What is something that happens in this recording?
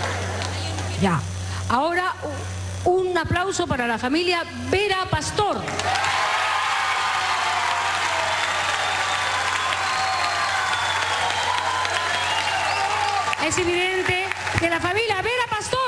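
A woman talks excitedly into a microphone, heard through loudspeakers.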